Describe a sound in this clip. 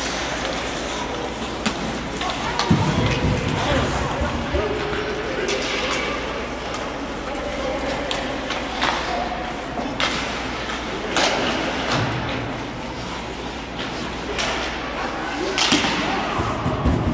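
Ice hockey skates scrape and carve across the ice in an echoing arena.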